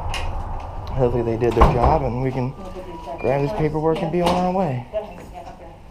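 A man speaks loudly and clearly nearby.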